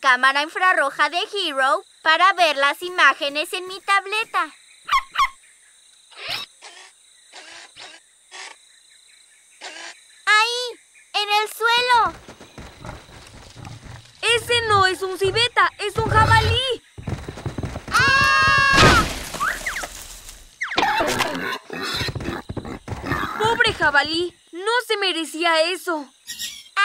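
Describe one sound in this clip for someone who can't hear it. A young child speaks with animation, close by.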